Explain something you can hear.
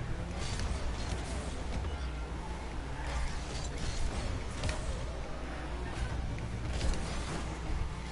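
A ball thuds as cars hit it.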